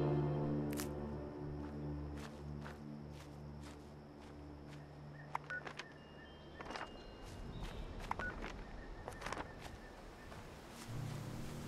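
Footsteps crunch steadily over dry grass and dirt.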